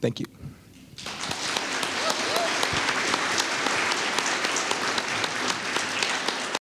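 An audience applauds steadily in a large room.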